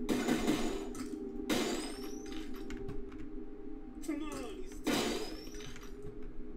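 Gunshots fire in loud, sudden bursts.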